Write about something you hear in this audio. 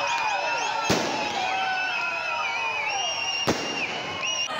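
Firecrackers bang sharply.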